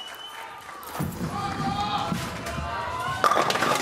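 A bowling ball rolls down a wooden lane with a low rumble.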